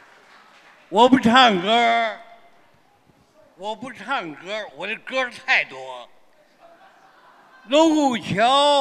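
An elderly man sings loudly into a microphone through loudspeakers.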